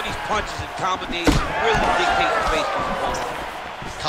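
A gloved fist lands a punch on a body with a thud.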